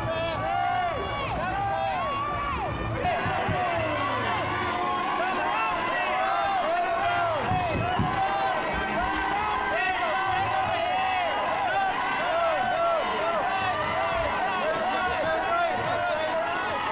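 A large crowd of fans shouts and calls out excitedly all around.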